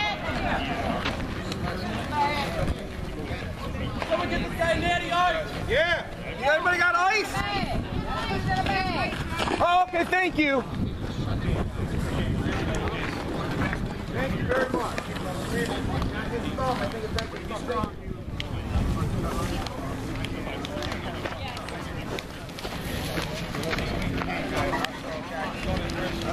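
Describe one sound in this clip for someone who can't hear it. A crowd of men talk and call out over each other outdoors.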